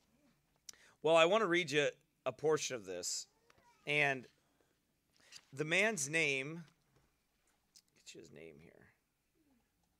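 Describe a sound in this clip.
A middle-aged man reads aloud with expression into a microphone.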